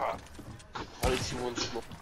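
A rifle fires shots in a video game.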